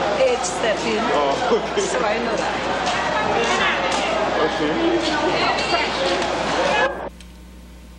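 An elderly woman talks cheerfully close by.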